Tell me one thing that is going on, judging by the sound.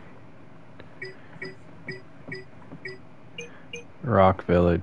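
Short electronic blips chime as a menu selection steps along.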